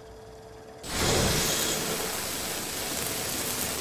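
A cutting torch hisses against metal.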